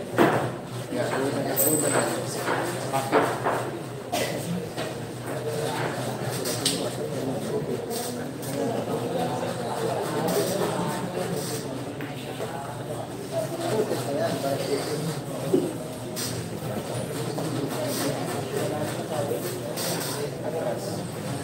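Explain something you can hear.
A crowd of people chatters nearby throughout.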